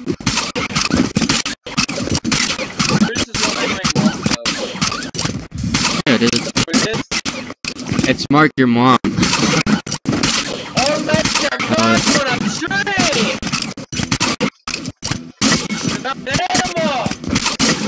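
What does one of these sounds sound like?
A gun fires repeated shots.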